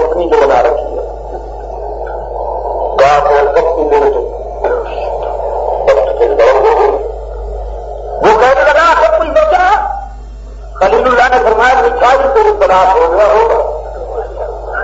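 A middle-aged man speaks calmly and steadily into a close microphone.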